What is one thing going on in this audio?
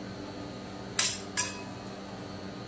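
A metal scraper scrapes sharply across a metal plate.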